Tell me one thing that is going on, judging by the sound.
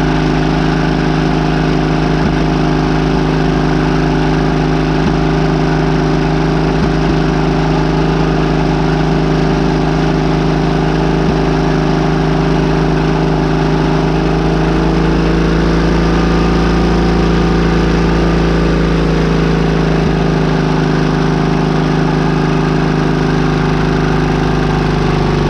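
A diesel engine idles steadily and loudly close by.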